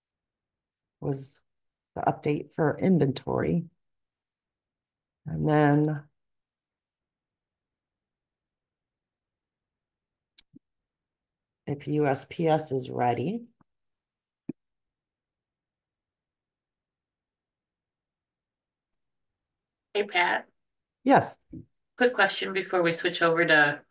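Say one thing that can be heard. A woman speaks calmly into a microphone, close by, with pauses.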